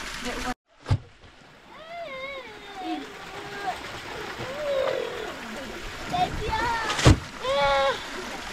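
A child splashes water in a shallow pool.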